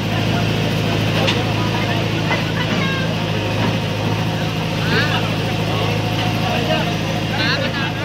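A backhoe loader's diesel engine rumbles steadily close by.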